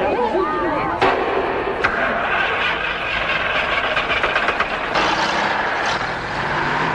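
A truck engine rumbles.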